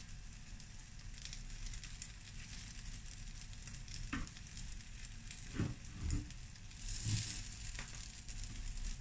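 A metal spatula scrapes across a pan.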